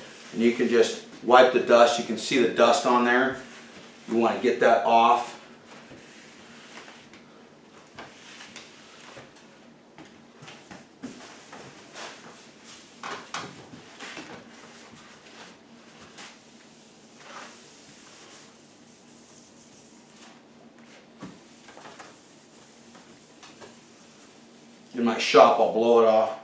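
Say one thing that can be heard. A cloth wipes across a wooden surface.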